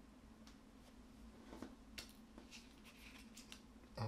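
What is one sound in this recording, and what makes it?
A card taps softly onto a table.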